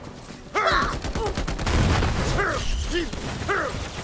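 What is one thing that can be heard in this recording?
A barrel explodes with a loud boom.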